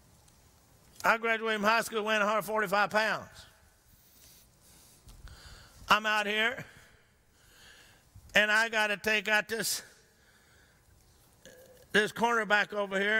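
An older man speaks with animation into a microphone, heard in a large room.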